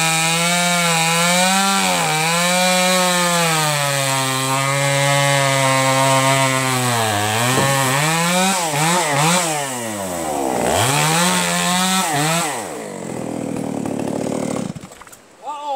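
A chainsaw engine runs loudly nearby, revving up and down as it cuts wood.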